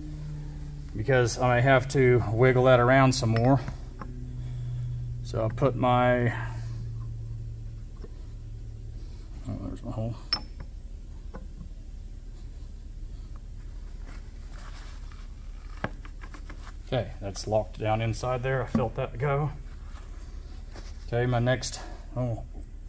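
Metal parts clink and scrape against each other.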